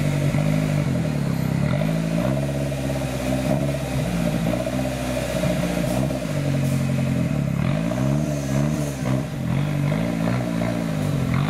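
An off-road truck's engine revs hard, rising and falling again and again.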